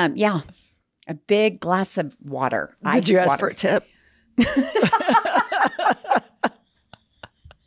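A woman talks into a close microphone with animation.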